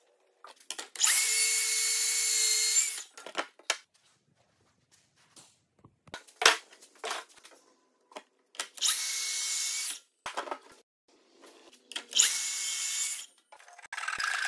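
A plunge track saw cuts through a wooden post in bursts.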